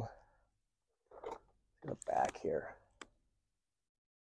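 Plastic packaging crinkles as it is handled.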